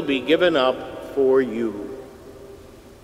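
An elderly man chants a short sung phrase through a microphone in a large echoing hall.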